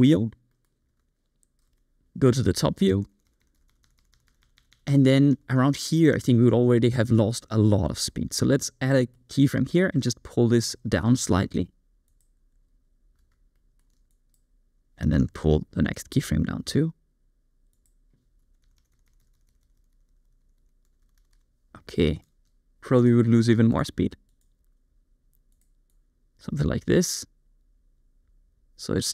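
A young man talks calmly into a close microphone, in short bursts with pauses.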